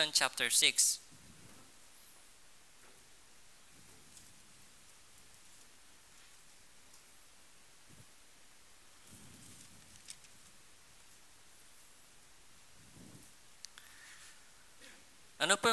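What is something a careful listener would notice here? A man speaks quietly and haltingly into a microphone, with long pauses.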